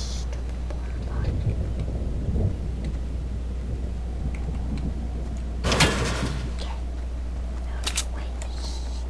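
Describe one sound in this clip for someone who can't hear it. A pickaxe strikes a plastic portable toilet with sharp knocks.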